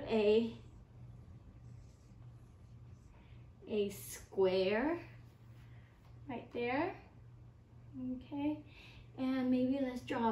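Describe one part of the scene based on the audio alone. A woman speaks in a bright, animated voice close to a microphone.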